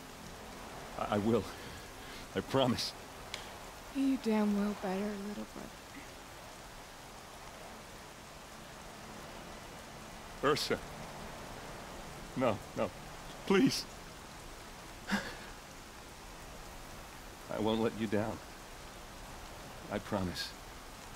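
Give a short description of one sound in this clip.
A man speaks softly and gently close by.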